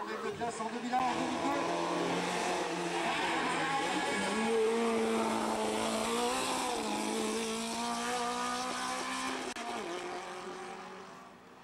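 A rally car engine revs hard and roars past on a winding road.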